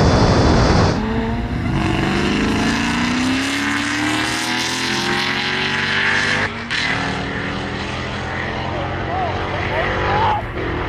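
Two sports cars accelerate hard away in the distance.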